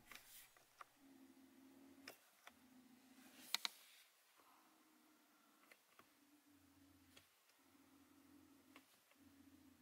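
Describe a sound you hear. A small electric motor whirs in short bursts.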